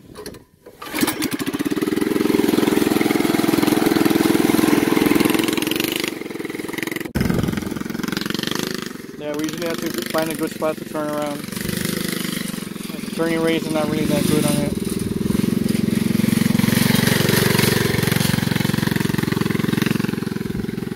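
A small kart engine starts and runs loudly, close by.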